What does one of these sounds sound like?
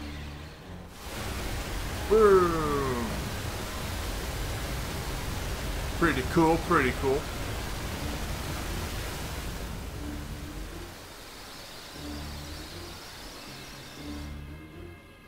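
A loud burst of rushing water roars out and then pours steadily.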